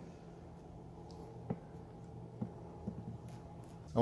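A plastic bottle is set down on a table with a light knock.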